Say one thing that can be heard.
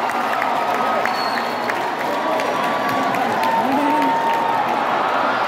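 Fans whistle shrilly among the cheering.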